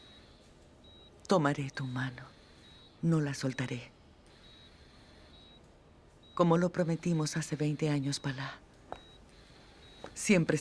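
A medical monitor beeps softly at intervals.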